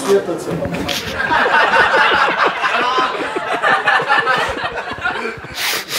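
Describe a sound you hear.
A crowd laughs and claps in a room.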